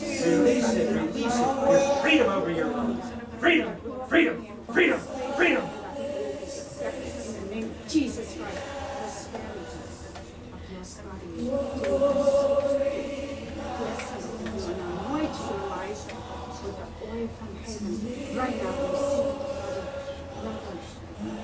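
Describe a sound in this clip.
A man speaks fervently through a loudspeaker.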